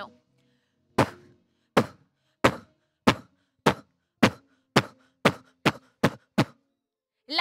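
A young woman snaps her fingers in a steady beat.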